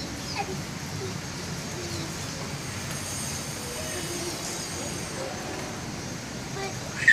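A young girl talks and laughs close by.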